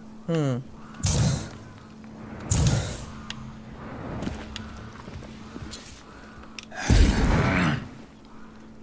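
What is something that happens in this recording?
A loud whoosh bursts out several times.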